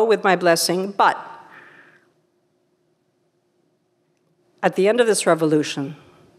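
A middle-aged woman speaks calmly into a microphone, her voice ringing in a large room.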